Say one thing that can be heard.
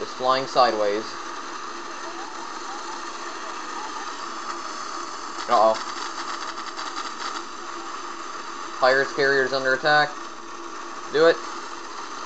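A spacecraft's engines roar steadily.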